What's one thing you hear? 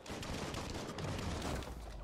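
A heavy weapon swings with a whoosh.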